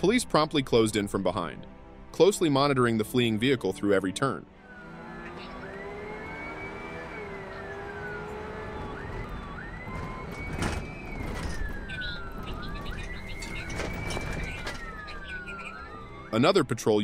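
A car engine roars at speed.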